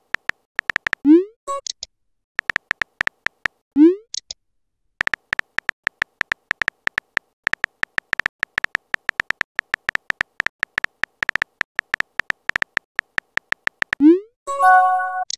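A soft whoosh sounds as a message is sent.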